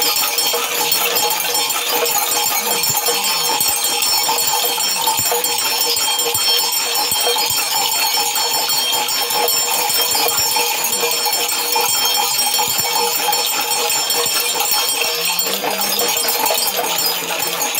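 Gourd rattles shake quickly and steadily, close by.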